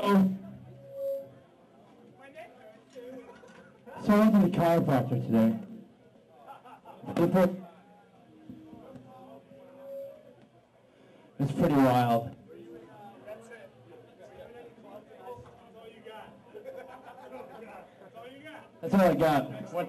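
A crowd of people chatters and murmurs.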